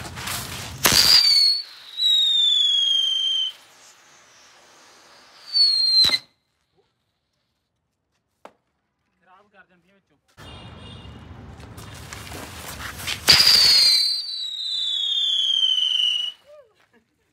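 A firework whistles shrilly, falling in pitch.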